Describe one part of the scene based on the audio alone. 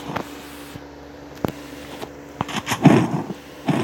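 A gun is drawn with a short metallic click.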